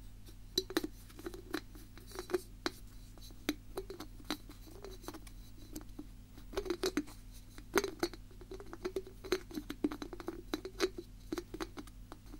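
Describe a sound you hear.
A young woman makes soft, wet mouth clicks close by.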